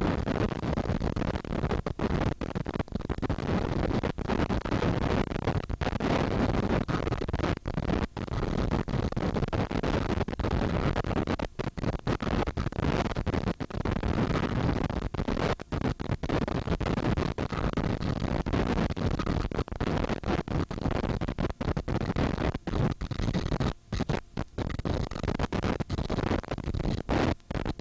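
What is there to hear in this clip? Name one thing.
A jet engine roars loudly and steadily close by.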